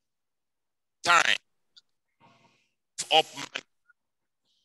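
A young man speaks briefly and calmly, close to a microphone.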